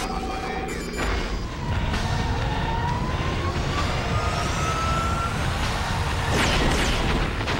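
Fires roar and crackle.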